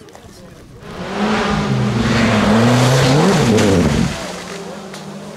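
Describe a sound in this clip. A rally car engine roars past at high revs.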